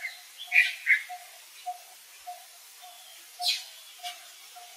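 A baby monkey squeaks in short, high cries.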